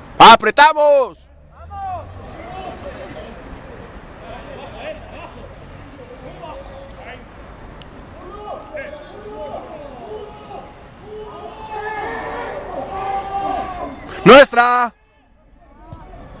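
Young men shout and call out to each other on an open field.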